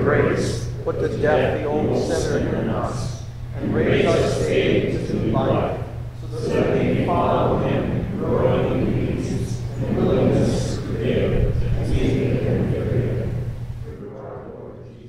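An elderly man speaks solemnly through a microphone in a large echoing hall.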